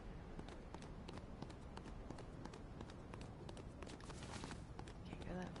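Footsteps tap on a hard floor in a small echoing room.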